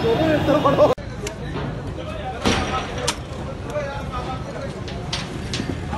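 Men talk nearby in a crowd.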